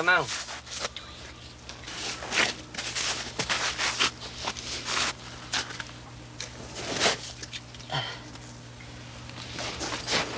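Thick syrup pours from a metal can and splashes softly into a trough.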